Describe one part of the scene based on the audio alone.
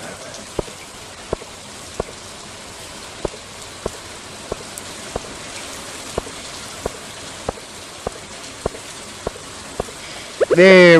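Footsteps tap steadily on the ground.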